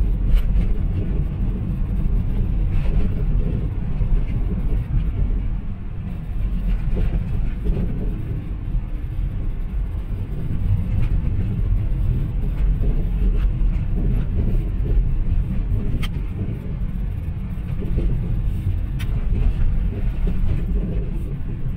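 A car drives along a city road, its low road rumble heard from inside the cabin.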